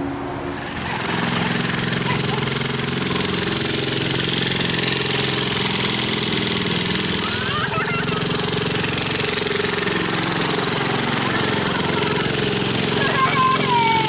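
A small go-kart engine drones steadily as the go-kart drives around outdoors.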